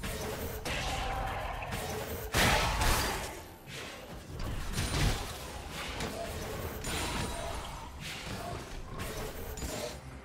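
Video game spell effects whoosh and crackle in bursts during a fight.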